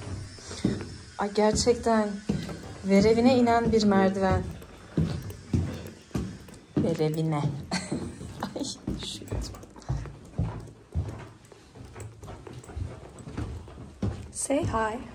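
Footsteps thud down stairs.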